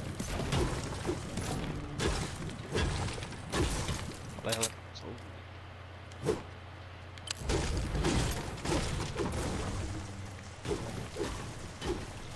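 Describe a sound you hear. A pickaxe strikes rock.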